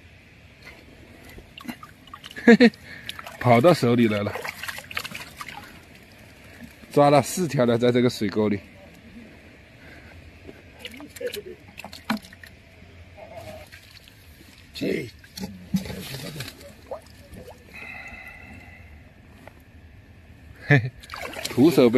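Hands splash in shallow water.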